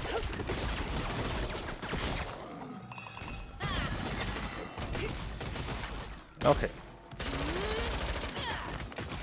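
Blows and impacts thud repeatedly in combat.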